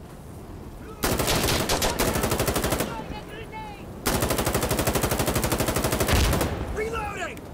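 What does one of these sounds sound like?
A rifle fires long, rapid bursts up close.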